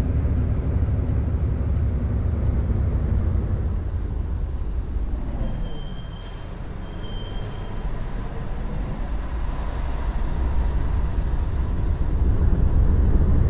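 A bus engine rumbles low and steady, dipping as it slows and rising again.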